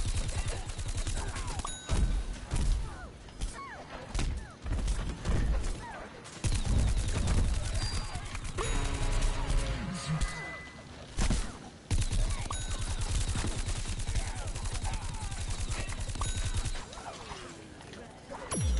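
Cartoonish blasts and bursts of gunfire sound from a video game.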